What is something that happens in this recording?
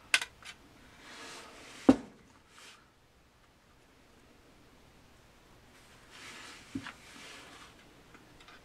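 Hands scrape and rustle against a plastic model.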